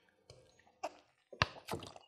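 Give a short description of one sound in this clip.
A young woman gulps water from a plastic bottle.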